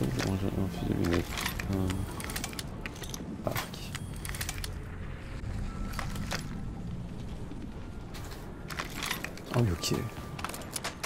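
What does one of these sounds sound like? A young man talks calmly into a headset microphone.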